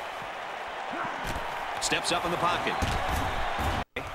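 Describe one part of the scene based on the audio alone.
Football players collide with thuds in a tackle.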